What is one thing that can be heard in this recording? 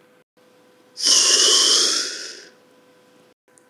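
A large beast roars loudly.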